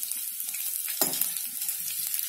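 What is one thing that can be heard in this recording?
A metal spoon scrapes against a pan.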